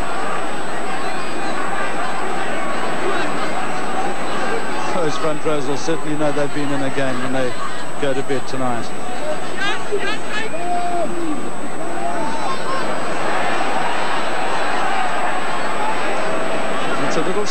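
A large crowd roars and cheers steadily outdoors.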